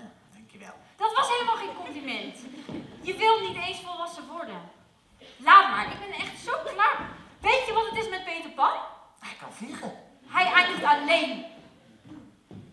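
A young woman speaks with emotion.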